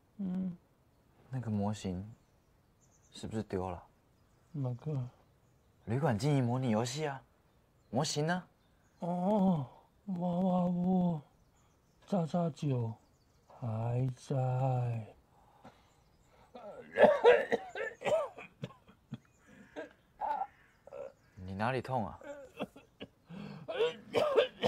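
A young man speaks softly and with concern, close by.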